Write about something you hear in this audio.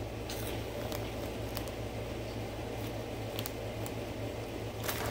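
A plastic snack bag crinkles and rustles close by.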